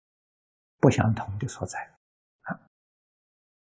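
An elderly man speaks calmly, close up.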